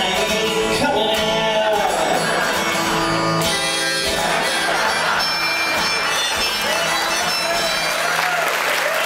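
An acoustic guitar strums along.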